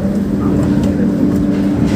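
A door handle clicks as it is pressed.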